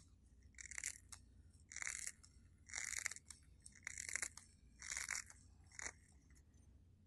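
Scissors snip rhythmically through stiff bristles.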